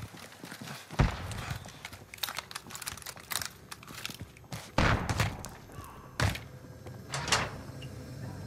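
Gunshots crack sharply, a few at a time.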